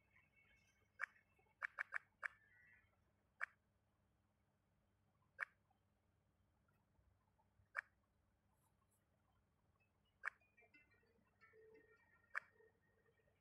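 Sharp game clicks sound now and then.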